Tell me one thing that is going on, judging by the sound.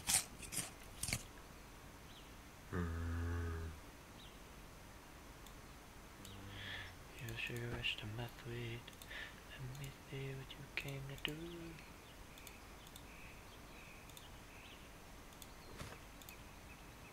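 Short clicks sound as items are moved between slots in a game's inventory.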